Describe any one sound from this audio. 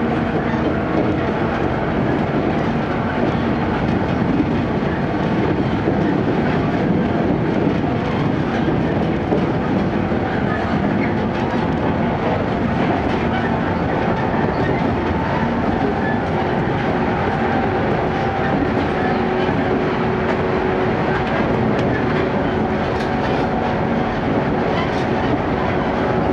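A train rumbles steadily along the track.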